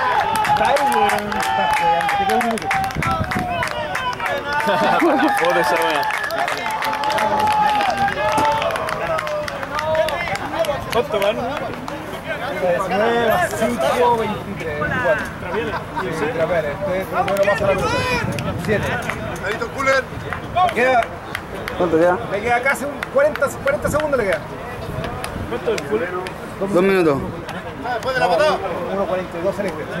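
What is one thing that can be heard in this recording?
Several men shout and call out across an open field outdoors.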